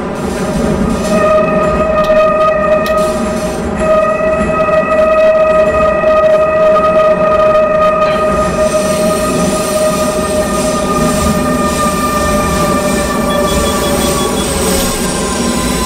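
An electric train motor whines, rising in pitch and then slowly falling.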